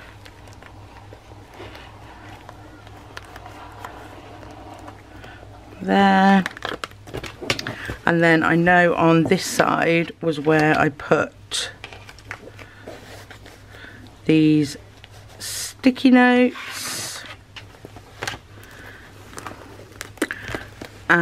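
Fabric rustles as hands handle a soft bag.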